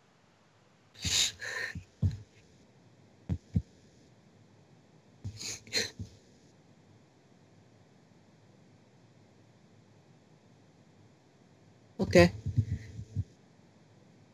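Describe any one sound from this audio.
A teenage boy laughs, heard through an online call.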